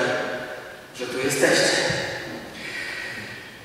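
A man laughs through a microphone.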